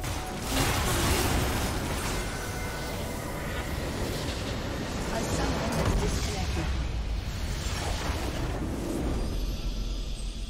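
Spells and weapons crash and explode in a fast video game battle.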